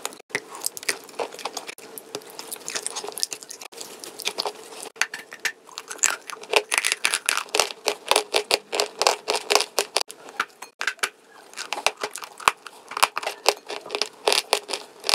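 A young woman chews food wetly and loudly, close to a microphone.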